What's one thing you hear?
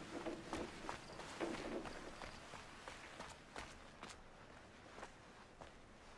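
Footsteps scuff softly on stone.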